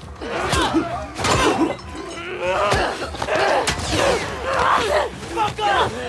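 Fists thud against a body.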